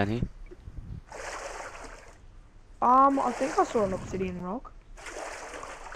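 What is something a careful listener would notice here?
Water splashes and swirls in short bursts.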